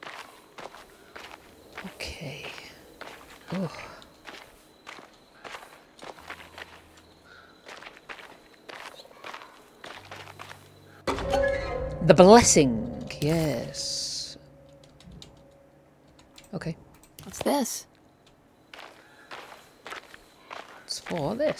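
Footsteps crunch on a gravel path at a steady walking pace.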